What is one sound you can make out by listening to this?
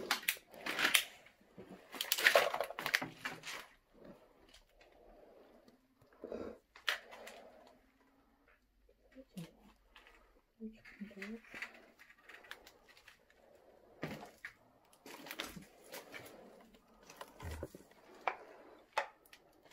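Debris crunches and rustles underfoot.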